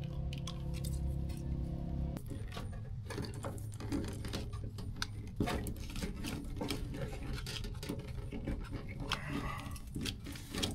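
Metal parts click and clink as a man handles them.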